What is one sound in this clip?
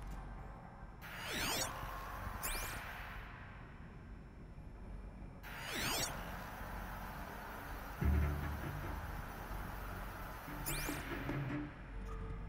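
An electronic scanning sound sweeps up and down in short bursts.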